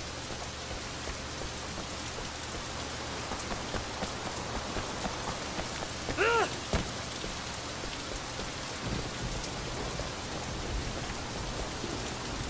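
Footsteps slap on a wet pavement.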